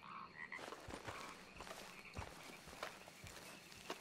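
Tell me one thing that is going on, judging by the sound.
Footsteps crunch on leaves and brush.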